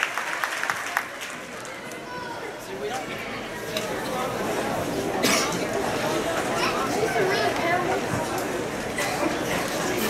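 Many people chatter in the audience.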